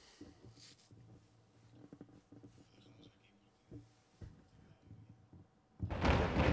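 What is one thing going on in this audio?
Feet land with soft thumps on a wooden floor in a large hall.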